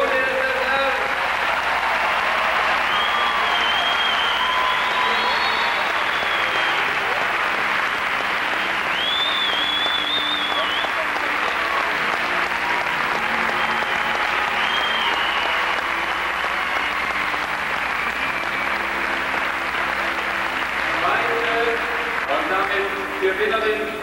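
A large crowd cheers, whistles and applauds steadily in a big echoing arena.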